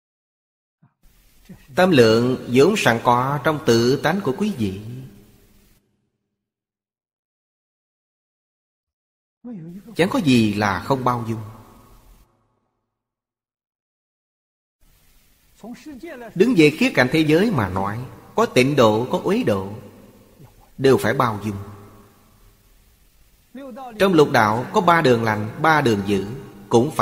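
An elderly man speaks calmly and close to a microphone, pausing between phrases.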